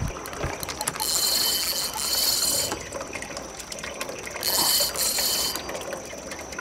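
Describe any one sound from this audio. A fishing reel whirs and clicks as its handle is cranked.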